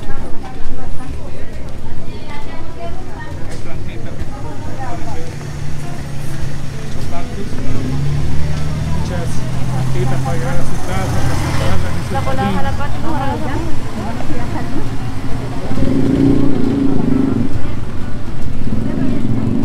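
Men and women chat nearby in a busy outdoor street.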